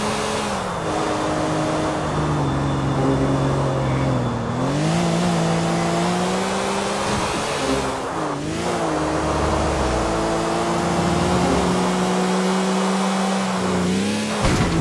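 A sports car engine roars at high revs, its pitch dropping and rising through gear changes.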